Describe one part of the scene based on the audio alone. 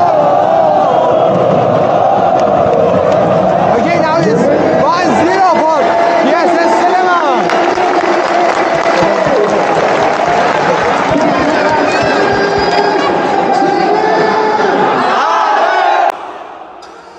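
A large crowd sings and chants loudly together in a big echoing stadium.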